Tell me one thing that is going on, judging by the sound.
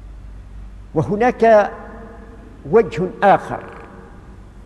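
An elderly man recites in a slow, chanting voice.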